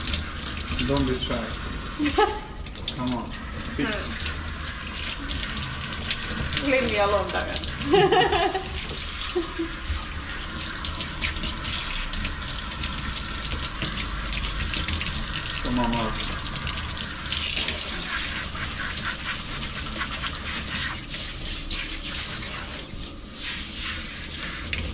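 Water sprays from a shower head and splashes onto a dog's wet fur.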